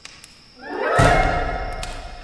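A person lands heavily on a stone floor with a thud.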